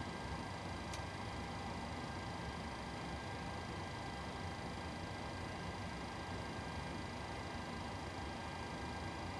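Jet engines hum and whine steadily.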